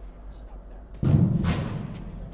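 A football is kicked hard with a dull thump.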